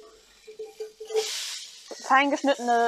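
Chopped onions pour into a hot pot and sizzle.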